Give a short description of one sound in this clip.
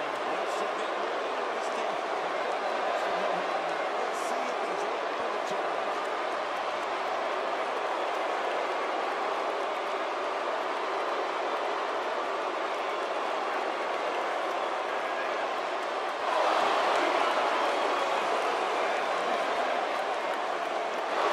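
A large crowd cheers and roars in a big echoing arena, growing louder partway through.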